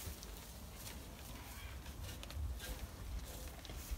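Hooves shuffle and rustle on straw close by.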